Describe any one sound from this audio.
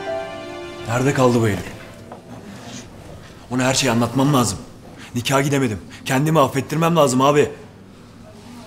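A young man speaks urgently and close by.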